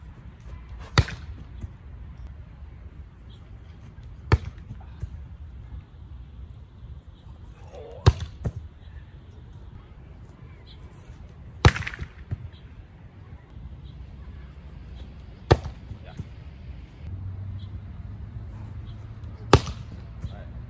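A hand slaps a volleyball hard off a spike trainer outdoors.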